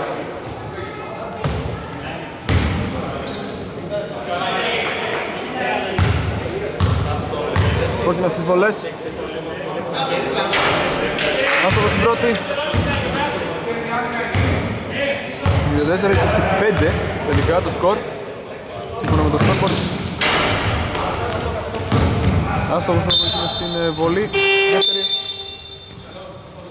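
Sneakers squeak on the wooden court.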